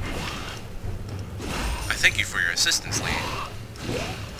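Magic spells burst and zap during a fight.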